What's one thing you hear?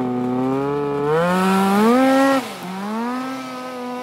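A snowmobile engine revs up loudly and roars away.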